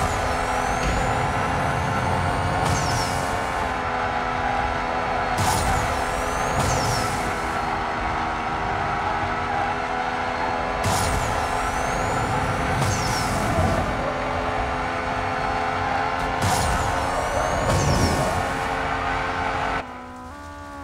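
Tyres screech as a car drifts.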